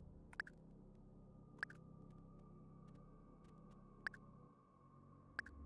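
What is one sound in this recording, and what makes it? A short electronic blip sounds each time a menu selection moves.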